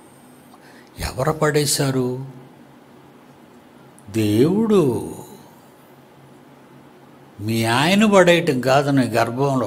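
An elderly man speaks slowly and expressively into a close microphone, with long pauses.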